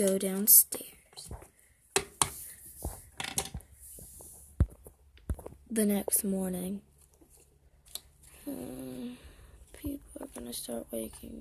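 Small plastic toys tap and clatter against a hard tabletop.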